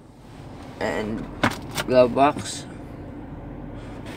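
A glove box latch clicks open.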